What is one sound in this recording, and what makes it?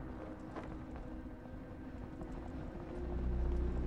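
Flags flap in a strong wind.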